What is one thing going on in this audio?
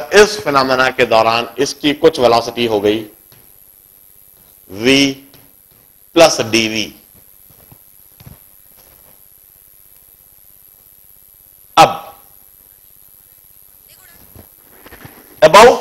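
A man speaks calmly through a close microphone, in short bursts with pauses.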